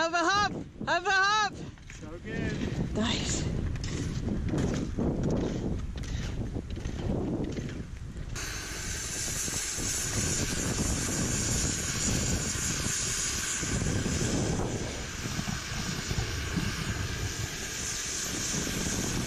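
A strong wind roars and buffets the microphone outdoors.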